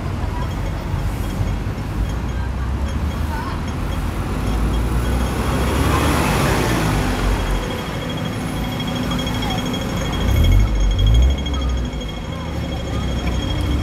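Traffic rumbles steadily along a busy city street.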